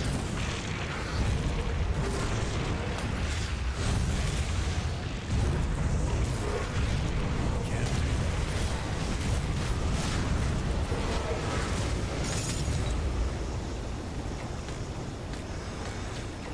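Fiery spells explode and crackle in quick bursts.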